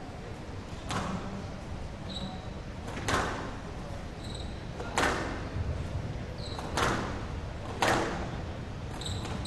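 Squash balls smack sharply off the walls of an echoing court.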